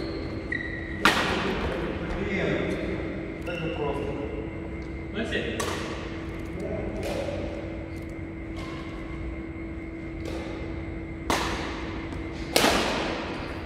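A racket smacks a shuttlecock with a sharp crack that echoes through a large hall.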